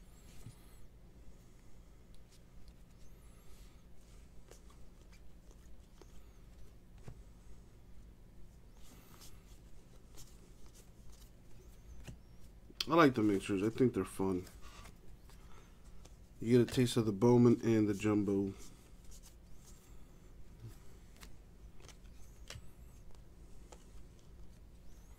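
Trading cards slide and flick against each other as they are shuffled by hand.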